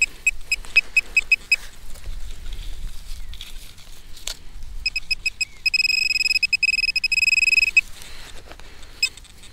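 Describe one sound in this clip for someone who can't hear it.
A metal detector pinpointer beeps rapidly, then gives a long steady tone.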